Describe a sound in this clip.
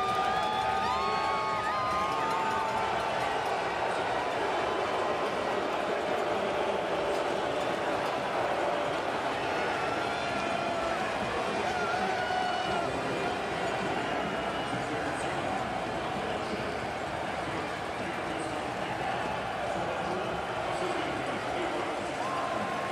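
A large crowd cheers and roars loudly in a big echoing arena.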